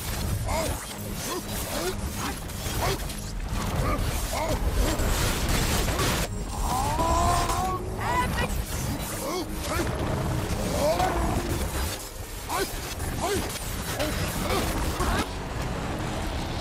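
Heavy blows land with sharp, crunching thuds.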